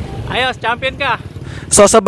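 A motor tricycle engine rumbles nearby.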